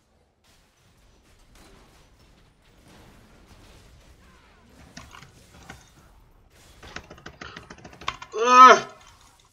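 Game fight effects clash and zap.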